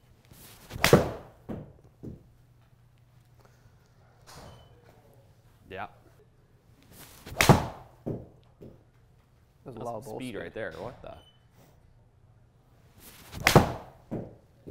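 A golf club strikes a ball with a sharp crack, several times.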